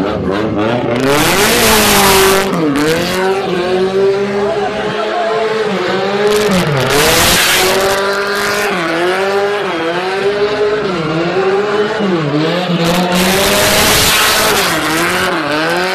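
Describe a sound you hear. Tyres screech loudly on asphalt in long bursts.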